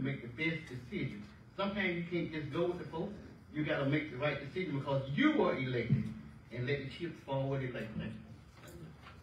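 A man speaks firmly into a microphone in an echoing hall.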